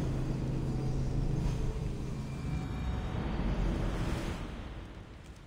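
A small fire burns softly with a low rumble.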